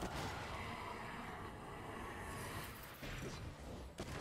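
Magic spell effects zap and whoosh in a video game.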